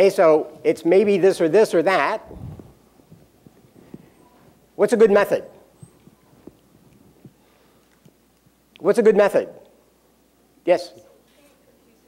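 A man lectures through a microphone in a large echoing hall, speaking in short bursts.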